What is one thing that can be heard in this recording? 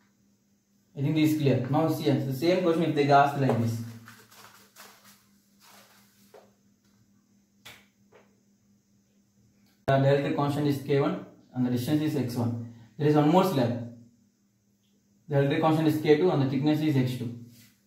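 A young man speaks calmly and clearly close by.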